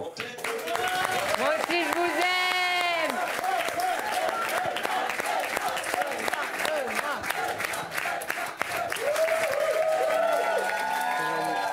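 An audience claps loudly.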